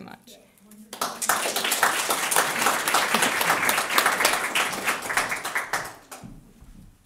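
An audience claps and applauds in a room.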